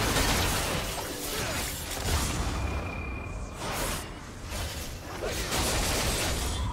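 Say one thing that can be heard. Spell effects whoosh and crackle in a video game fight.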